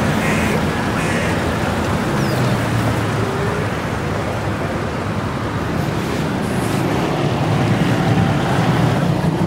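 Cars drive past nearby on the road.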